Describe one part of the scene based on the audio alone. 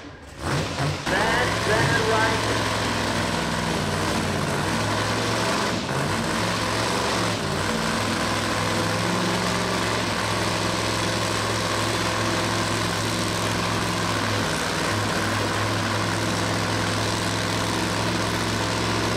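A race car engine idles nearby with a steady, deep rumble.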